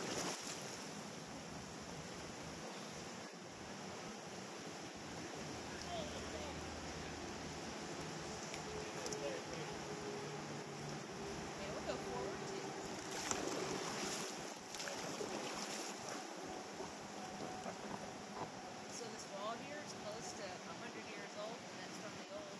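Water laps gently against an inflatable raft.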